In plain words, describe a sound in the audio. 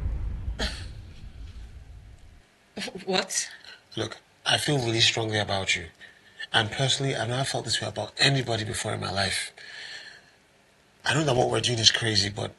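A woman speaks softly, close by.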